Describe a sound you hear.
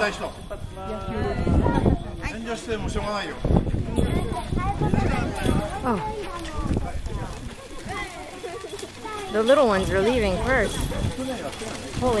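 Children and adults chatter and call out nearby.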